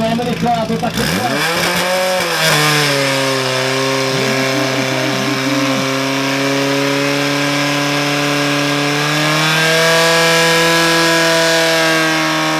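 A pump engine starts and runs loudly and steadily, revving higher near the end.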